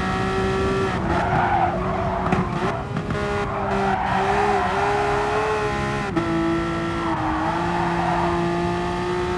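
Tyres squeal through the corners.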